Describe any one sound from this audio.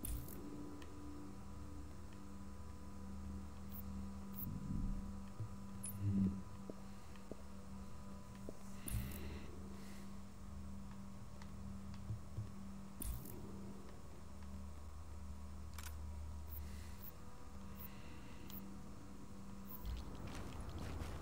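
Soft interface clicks sound now and then.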